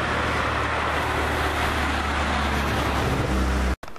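A car drives past on the road nearby.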